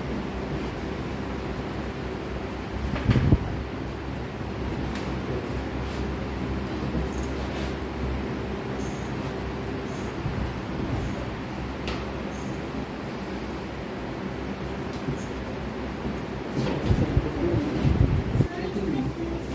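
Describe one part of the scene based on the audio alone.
A man speaks calmly.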